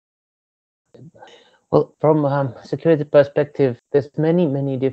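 A man speaks calmly, heard as a recording.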